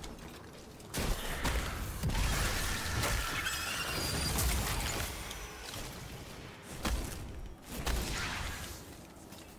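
Electric blasts crackle and boom loudly.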